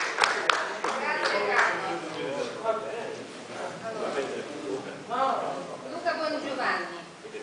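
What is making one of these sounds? A young man speaks into a microphone through loudspeakers in a large room.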